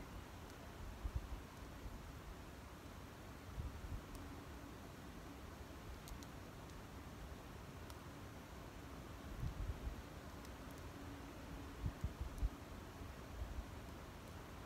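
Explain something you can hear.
Wind blows outdoors in low, brief gusts.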